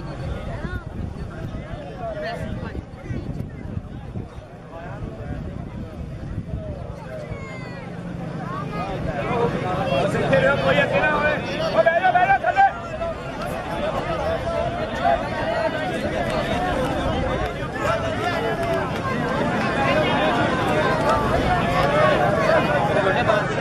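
A large crowd shouts and cheers outdoors, growing louder.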